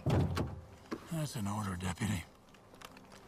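A middle-aged man speaks calmly through an open car window.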